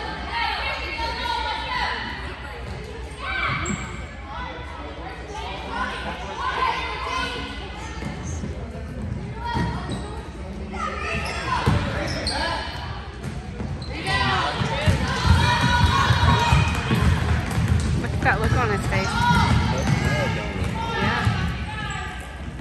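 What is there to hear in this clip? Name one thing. Spectators chatter, their voices echoing through a large hall.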